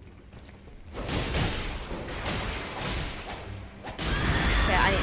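Heavy blows and crashes of a game fight ring out.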